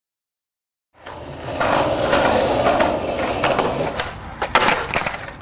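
Skateboard wheels roll loudly over rough concrete.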